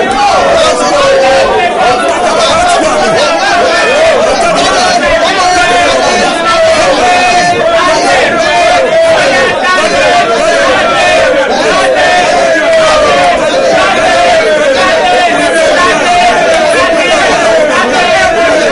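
A middle-aged woman sings loudly and energetically.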